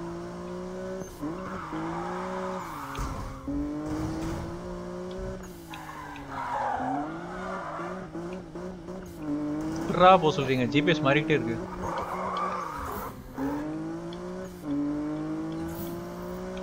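Tyres screech as a car drifts on a wet road.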